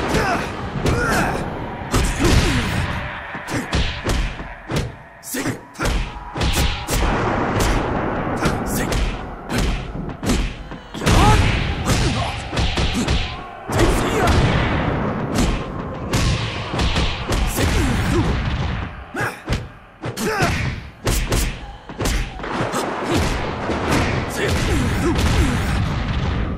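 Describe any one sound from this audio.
Punches and kicks land with sharp, rapid smacks and thuds.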